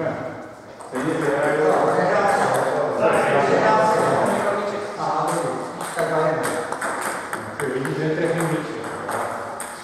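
A table tennis ball clicks back and forth on a table and bats.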